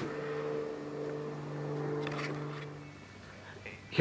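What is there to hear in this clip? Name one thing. A nail gun fires into wood with a sharp snap.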